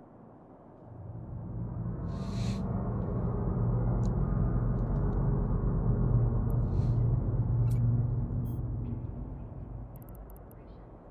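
A spaceship's engines hum with a deep rumble that swells and then fades.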